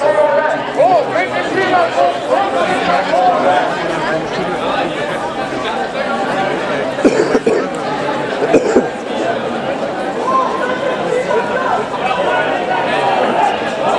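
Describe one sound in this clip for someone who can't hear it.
Many footsteps shuffle on cobblestones.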